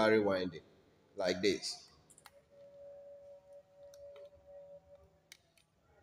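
Small plastic connectors click and tap as wires are handled.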